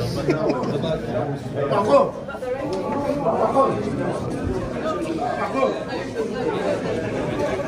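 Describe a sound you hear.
A crowd of men and women chatter close by in a room with echoing walls.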